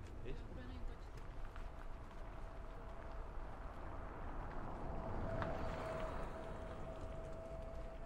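A small utility vehicle drives past.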